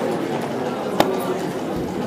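A game clock's button clicks once.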